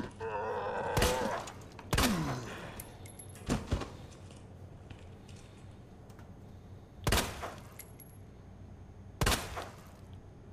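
Gunshots ring out sharply, a few seconds apart, with a short echo.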